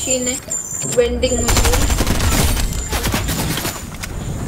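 Gunshots fire in rapid bursts close by.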